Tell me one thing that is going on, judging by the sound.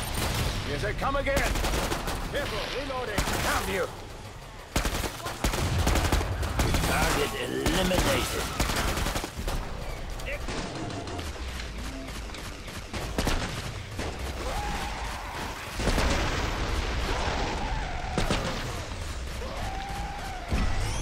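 Monsters screech and growl.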